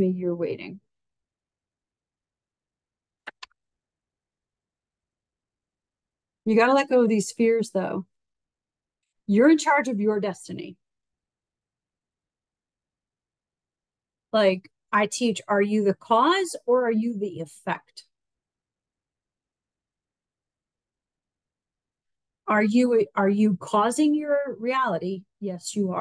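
A woman speaks calmly and closely into a microphone, with long pauses.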